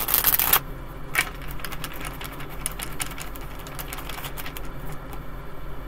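Cards shuffle and flick in a woman's hands.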